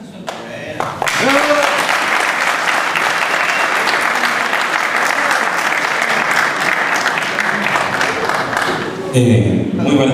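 A crowd applauds and cheers loudly in a large room.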